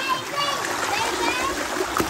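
A toddler splashes in shallow water.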